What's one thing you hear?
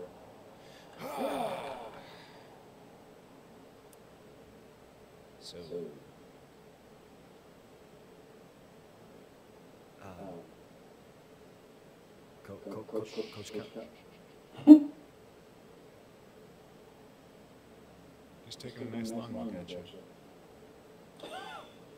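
A middle-aged man speaks slowly, with long pauses.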